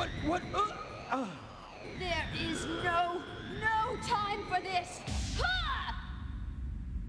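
Magical energy crackles and whooshes with sweeping tones.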